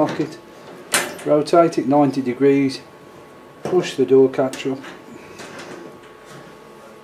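A metal latch clicks as a key turns.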